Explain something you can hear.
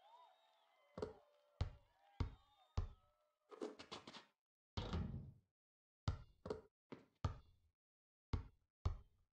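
A basketball bounces repeatedly on a hard court.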